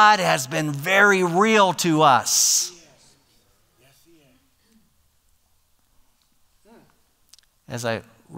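An elderly man speaks with animation through a microphone in a large room.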